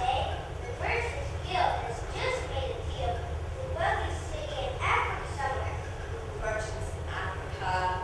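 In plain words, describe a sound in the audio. A young boy speaks up in reply.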